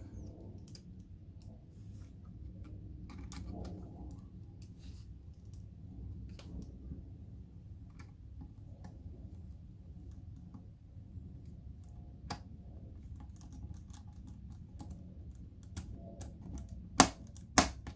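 A small screwdriver turns screws, with light metal clicks and scrapes.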